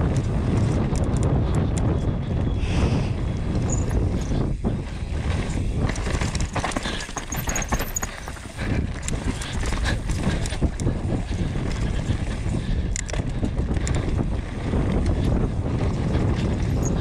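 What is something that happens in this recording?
Wind rushes loudly past a fast-moving rider.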